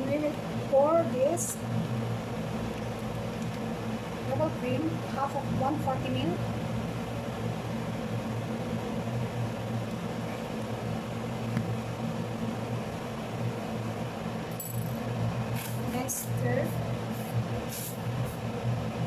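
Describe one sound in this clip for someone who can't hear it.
Hot liquid sizzles gently in a pan.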